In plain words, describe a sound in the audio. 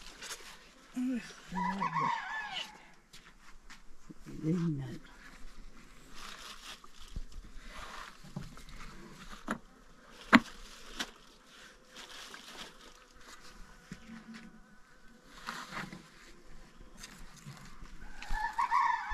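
A woman speaks in short, calm remarks close by.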